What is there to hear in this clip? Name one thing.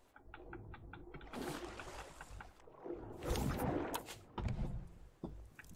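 Water splashes as a swimmer dives in and surfaces.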